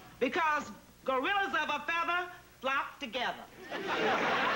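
An elderly woman speaks loudly and with animation.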